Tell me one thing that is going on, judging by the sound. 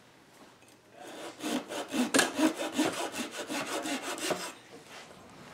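A knife scrapes across thin wood veneer.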